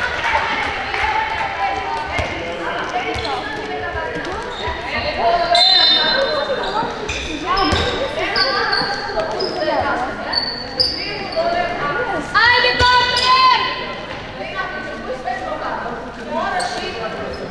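Young players shout and call to each other in a large echoing hall.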